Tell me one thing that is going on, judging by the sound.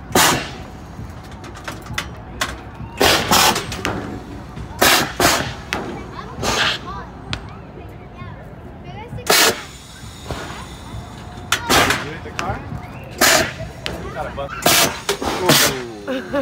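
An air cannon fires with loud, sharp blasts of air.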